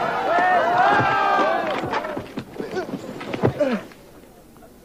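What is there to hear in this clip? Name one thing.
A skier crashes and tumbles into snow.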